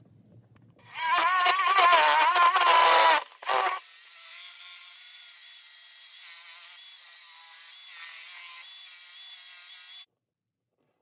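An electric belt sander whirs loudly, grinding wood.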